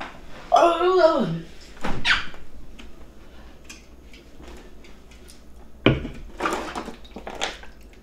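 A refrigerator door opens and thumps shut.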